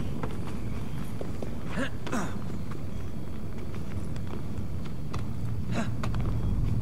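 Hands and boots scrape and knock against stone while climbing.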